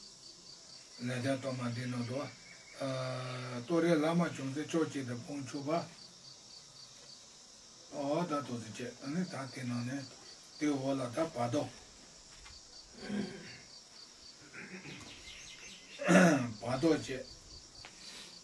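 An elderly man speaks calmly in short phrases, with pauses between them.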